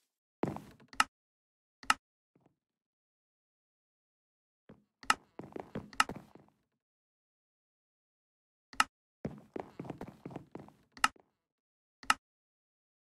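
Menu buttons click sharply now and then.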